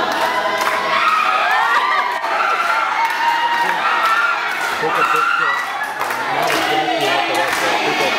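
A crowd cheers and ululates with excitement.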